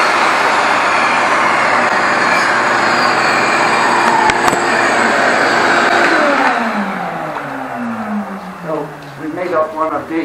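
A table saw motor whirs loudly, then winds down.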